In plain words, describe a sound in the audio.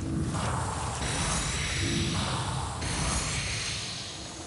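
A magic weapon rings out with a bright, shimmering chime.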